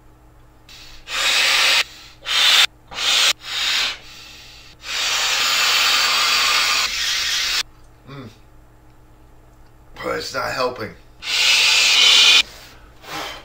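A man blows hard into an inflatable toy in long breaths.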